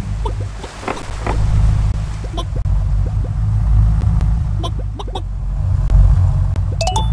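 Short game hop sounds pop as a character leaps forward again and again.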